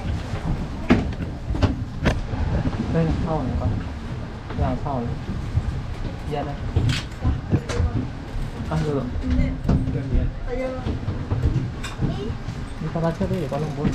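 A cable car rumbles and rattles as it begins to move.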